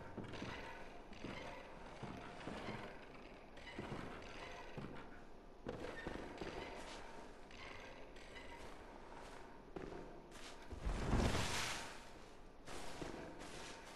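Footsteps crunch on straw and wooden boards.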